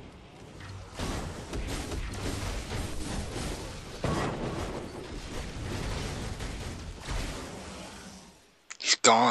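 Blows, blasts and fiery bursts crash and whoosh in quick succession.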